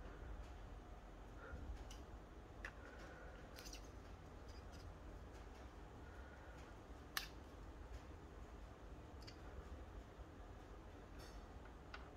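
A screwdriver clicks and scrapes against metal screws.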